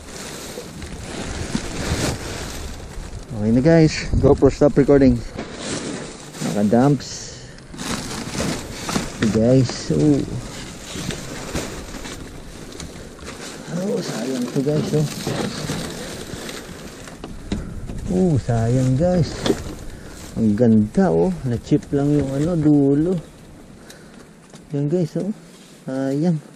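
Plastic bags rustle and crinkle as they are pushed about close by.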